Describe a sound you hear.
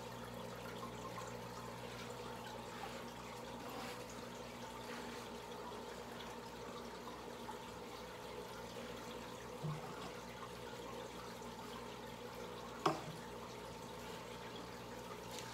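Air bubbles rise and burble through aquarium water.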